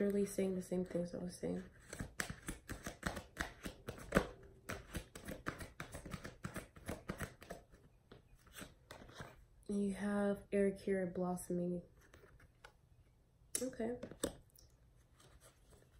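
Cards rustle and flick as they are shuffled.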